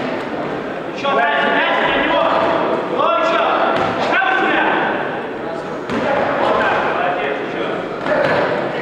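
Spectators shout encouragement in a large echoing hall.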